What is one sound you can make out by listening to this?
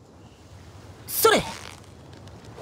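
A fishing line is cast and the float splashes into water.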